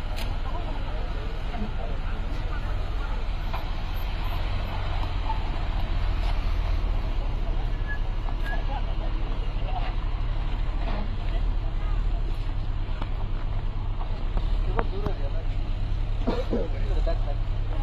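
A crowd of men chatters in the background outdoors.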